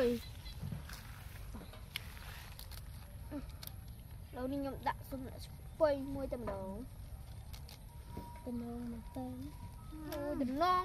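Children slurp and chew noodles.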